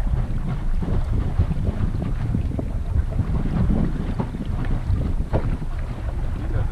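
Water splashes against a sailboat's hull.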